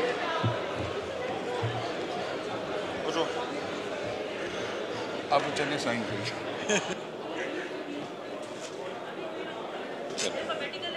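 Many men and women murmur and chatter in a large hall.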